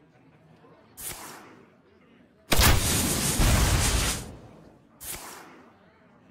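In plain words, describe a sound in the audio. Game cards whoosh and slam down with loud magical bursts.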